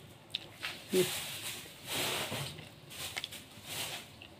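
A woman chews and crunches fresh leaves.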